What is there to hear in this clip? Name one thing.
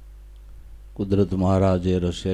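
An elderly man sings through a microphone.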